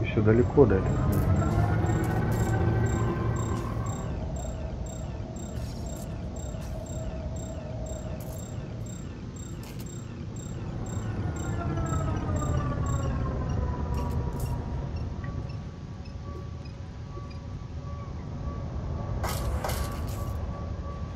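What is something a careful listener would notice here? A spaceship engine hums low, its whine rising and falling in pitch.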